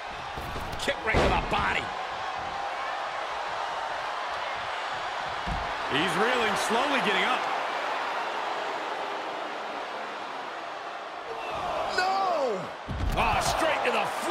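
A body slams hard onto a wrestling ring mat with a heavy thud.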